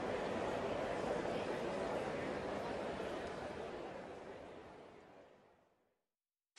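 A crowd applauds and slowly fades to silence.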